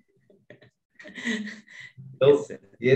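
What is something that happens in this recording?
A young man laughs over an online call.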